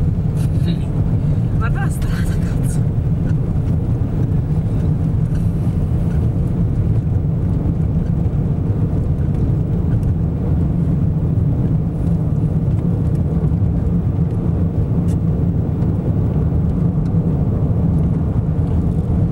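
Strong wind roars and buffets a moving car.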